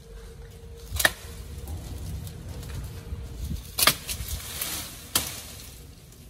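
A machete chops into a tree branch.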